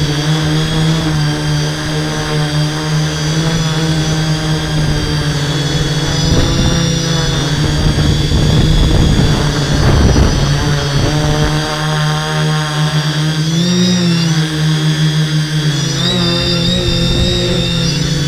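The electric motors and propellers of a hexacopter drone whine as it hovers and climbs, and the pitch shifts with the throttle.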